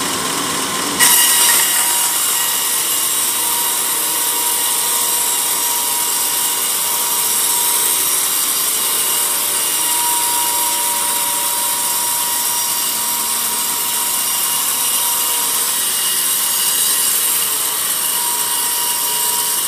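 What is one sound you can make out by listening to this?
A band saw blade bites into a log and cuts through it with a harsh, hissing whine.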